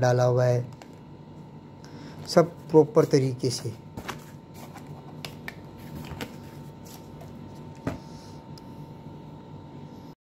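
Paper pages turn and rustle.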